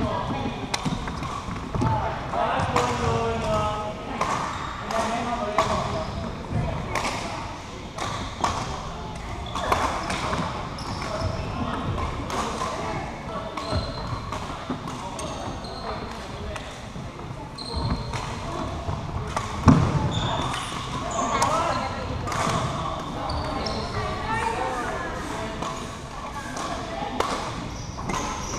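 Young women chatter and call out across a large echoing hall.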